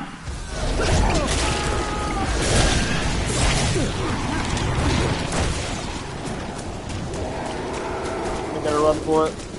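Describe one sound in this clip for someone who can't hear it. Footsteps run through dry grass.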